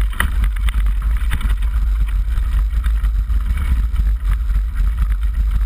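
Bike tyres rattle and crunch over a rough dirt trail.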